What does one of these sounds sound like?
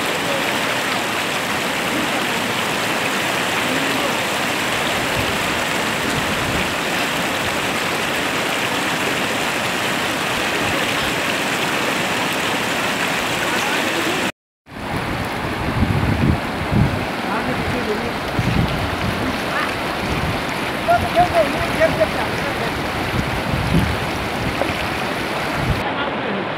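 A mountain stream rushes and splashes over rocks close by.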